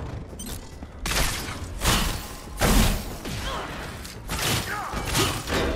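Energy blasts whoosh and crackle in loud bursts.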